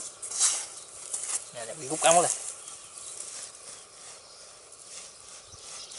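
Hands scrape and brush through dry, loose soil.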